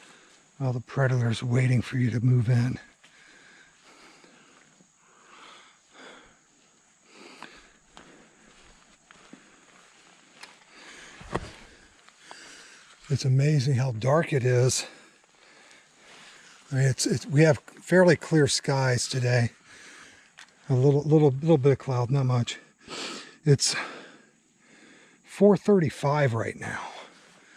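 Footsteps tread on a soft forest path.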